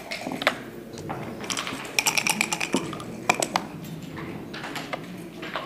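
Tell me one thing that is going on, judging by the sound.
Game pieces click as they are moved on a board.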